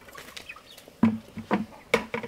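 A ladle clanks against a metal pot as water is scooped out.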